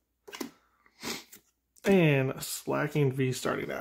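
Cards slide and flick softly as they are shuffled by hand.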